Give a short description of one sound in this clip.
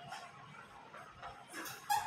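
A marker scratches on a whiteboard.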